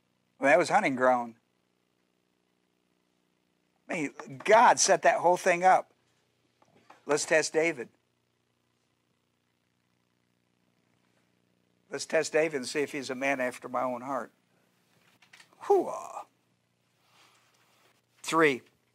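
An older man speaks calmly into a microphone in short phrases with pauses.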